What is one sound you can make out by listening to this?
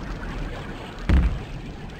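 A gun fires once with a loud bang.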